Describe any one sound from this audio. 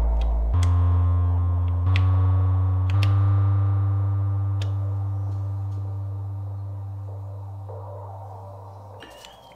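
A deep synthesizer bass note changes pitch in steps, then slowly fades away.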